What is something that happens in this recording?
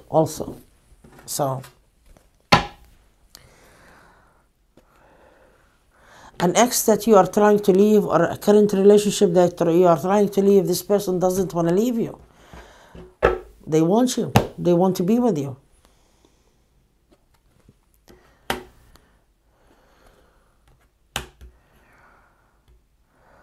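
Cards tap and slap softly on a wooden table.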